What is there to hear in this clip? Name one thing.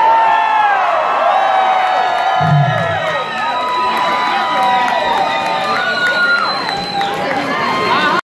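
An electric guitar plays through amplifiers.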